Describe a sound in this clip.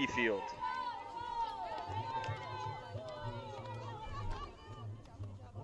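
A group of young women cheer and shout nearby.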